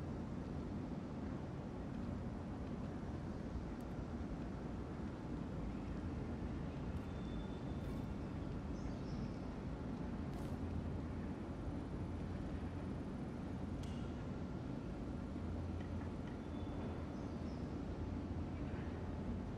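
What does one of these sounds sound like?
A ceiling fan hums steadily.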